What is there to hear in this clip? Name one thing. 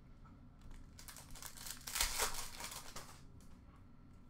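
Plastic card wrappers crinkle and rustle in hands.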